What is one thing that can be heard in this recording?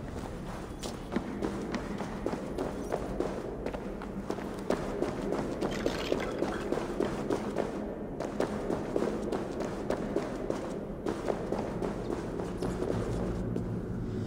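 Footsteps crunch quickly over stony ground.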